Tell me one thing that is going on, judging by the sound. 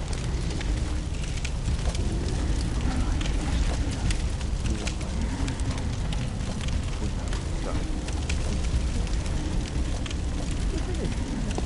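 A fire crackles and roars close by.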